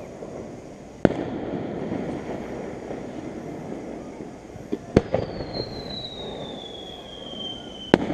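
Fireworks burst with sharp bangs in the distance.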